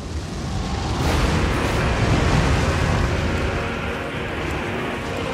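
A roaring blast of fire bursts and rumbles.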